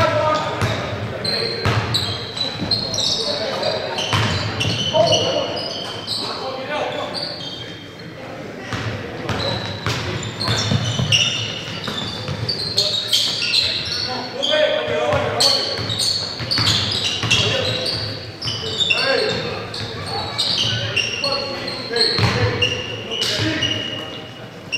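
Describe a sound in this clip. A basketball bounces on the floor with hollow thuds.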